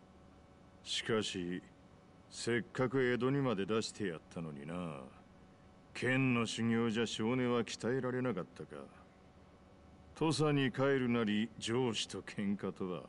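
A middle-aged man speaks calmly and with some reproach, close by.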